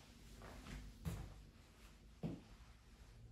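A door knocks softly as a hand pushes it open.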